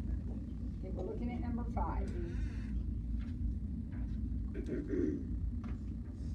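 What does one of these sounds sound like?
A man speaks quietly and haltingly, with long pauses.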